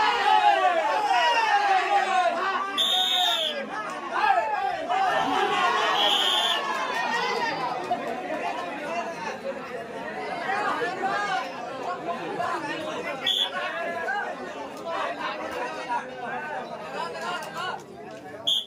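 A crowd of men shouts and cheers loudly.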